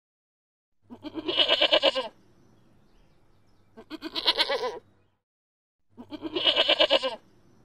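A young goat bleats in short, wavering cries.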